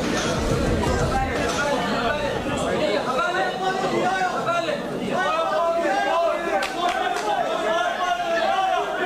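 A crowd of spectators talks and shouts.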